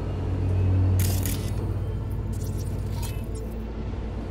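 An electronic scanner switches on with a crackling buzz.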